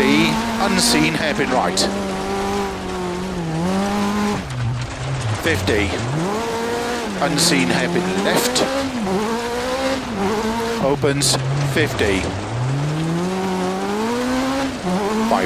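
A rally car engine revs hard, rising and dropping in pitch with gear changes.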